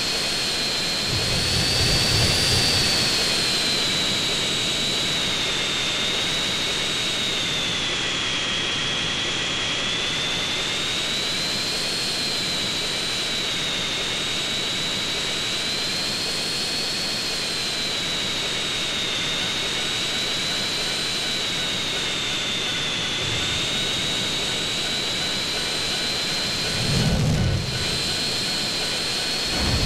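A jet engine whines loudly and steadily, its pitch wavering slightly.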